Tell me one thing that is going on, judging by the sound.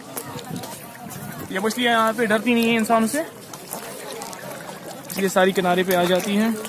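Fish splash and slurp at the water's surface.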